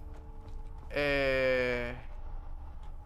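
A young man speaks briefly and loudly into a close microphone.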